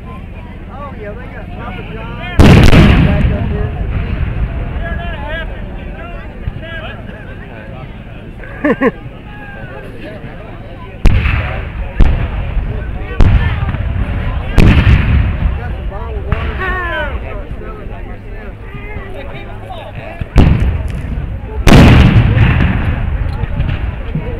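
A crowd of men murmurs and calls out outdoors.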